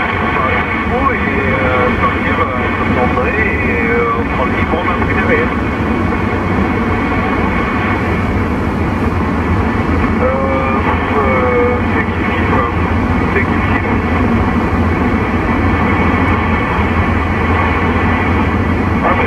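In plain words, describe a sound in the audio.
A car's tyres rumble on an asphalt road, heard from inside the car.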